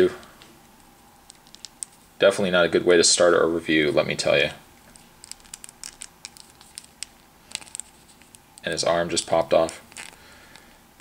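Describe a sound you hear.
Small plastic parts click and tap softly as a toy figure is turned in the hands.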